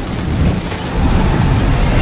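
Crows caw and flap their wings in a swarm.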